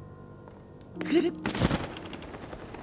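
A glider snaps open with a sharp flap.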